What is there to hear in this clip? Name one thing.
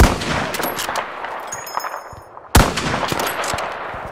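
A rifle bolt clacks as it is worked.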